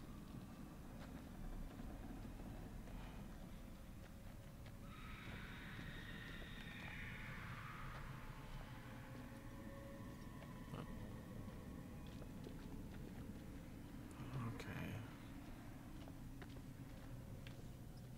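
Footsteps crunch slowly on a dirt path.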